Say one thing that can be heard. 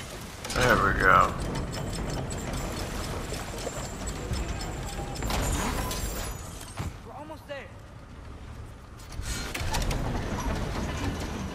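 A large wooden wheel turns and creaks.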